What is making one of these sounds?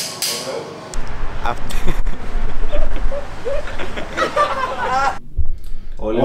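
A young man laughs heartily.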